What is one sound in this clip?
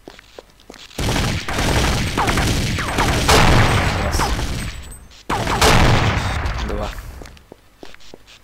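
A gun fires in loud bursts that echo down a tunnel.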